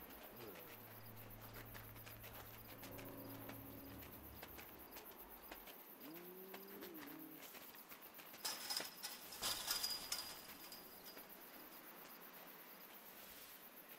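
Light paws patter quickly through crunchy snow.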